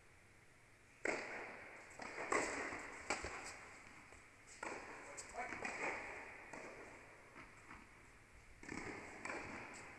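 Tennis rackets strike a ball back and forth, echoing in a large hall.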